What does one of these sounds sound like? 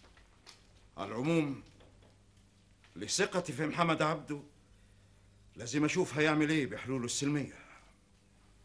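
A man answers in a firm, deep voice close by.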